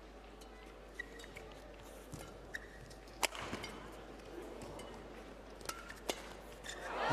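A racket strikes a shuttlecock with sharp pops in a large hall.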